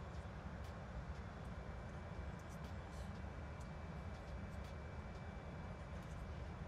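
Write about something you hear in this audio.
A steady, low engine rumble and airflow drone fill an aircraft cockpit.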